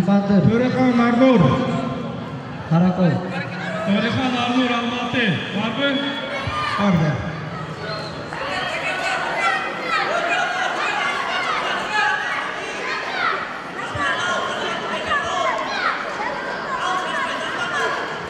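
A crowd of young spectators shouts and cheers in an echoing hall.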